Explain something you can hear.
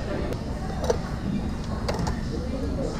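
A glass jar clinks against a bowl.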